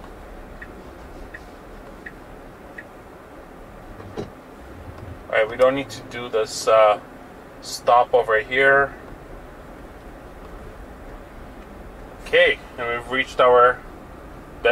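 A car rolls quietly along a snowy road with a low steady rumble.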